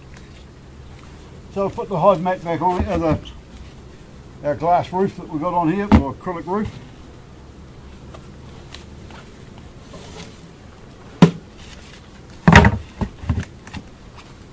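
Wooden hive boxes knock and scrape as they are lifted and set down.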